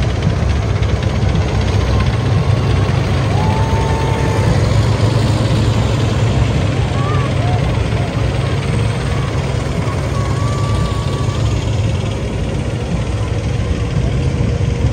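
Tracked armoured vehicles rumble and clatter past loudly.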